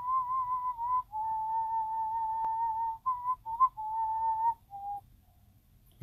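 An older man whistles a wavering tune close to a microphone.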